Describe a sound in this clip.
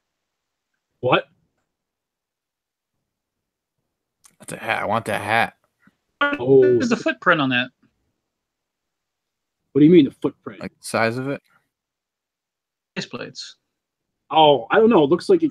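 A man talks with animation over an online call, in short bursts.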